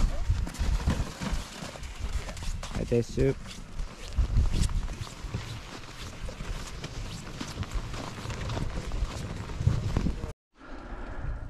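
Boots crunch steadily through snow.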